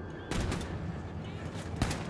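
An explosion booms and fire roars.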